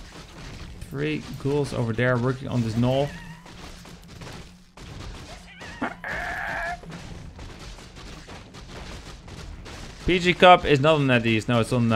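A man commentates excitedly through a microphone.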